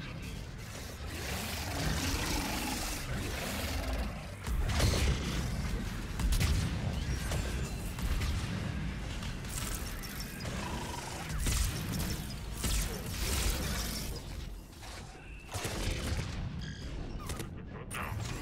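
Gunshots and explosions crack and boom throughout a loud battle.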